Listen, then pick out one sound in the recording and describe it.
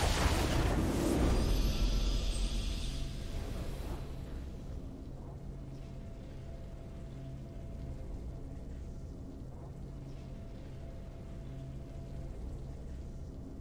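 A triumphant game fanfare plays and fades.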